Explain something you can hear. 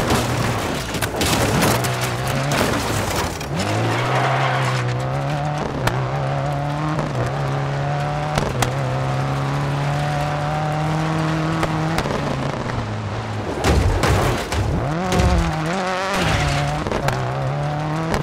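Tyres skid and crunch on gravel.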